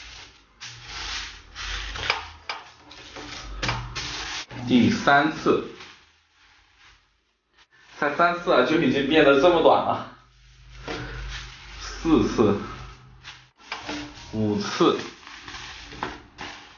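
Paper crinkles and rustles as it is folded and pressed flat.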